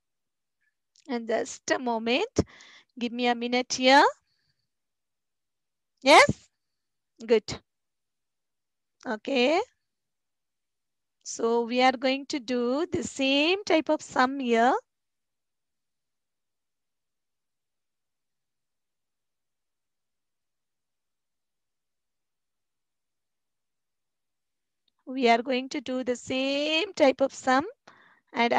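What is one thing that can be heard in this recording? A woman speaks calmly and clearly into a headset microphone, with pauses.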